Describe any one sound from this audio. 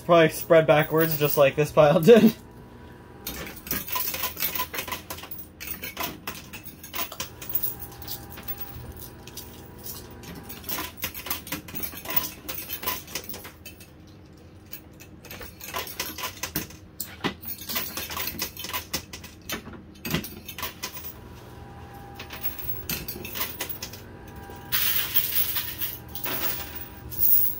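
A pusher machine's tray slides and scrapes steadily.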